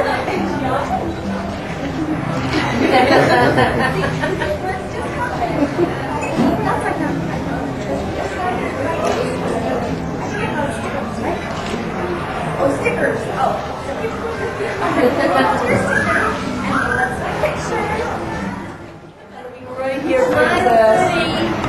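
A young woman talks cheerfully and animatedly nearby.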